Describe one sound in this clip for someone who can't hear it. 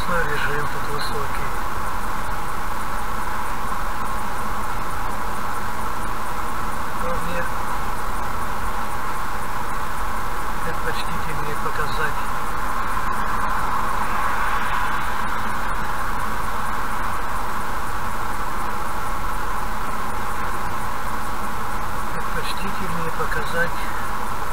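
Tyres roar steadily on a highway as a car drives at speed.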